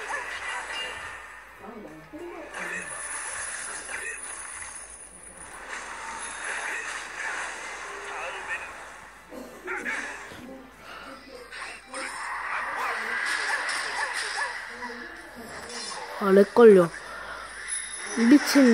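Game battle sounds of clashing and blasts play from a small phone speaker.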